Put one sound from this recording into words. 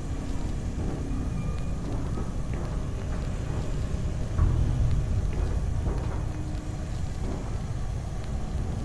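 A large fan hums low and steady.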